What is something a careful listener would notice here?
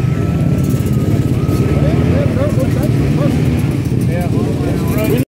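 A dirt bike engine rumbles and revs nearby.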